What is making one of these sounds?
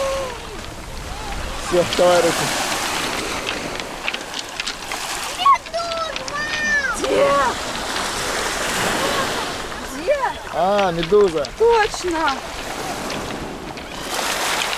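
Small waves wash onto a pebble shore.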